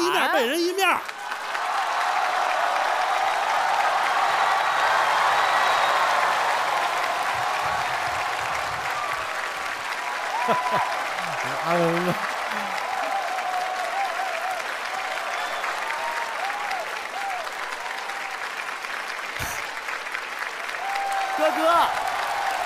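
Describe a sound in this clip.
A large audience cheers and applauds.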